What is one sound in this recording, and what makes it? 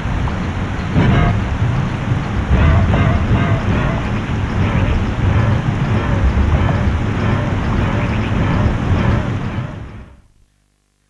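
A heavy metal gate grinds and rumbles as it slowly rises.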